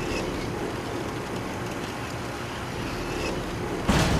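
A metal lift gate rattles and clanks shut.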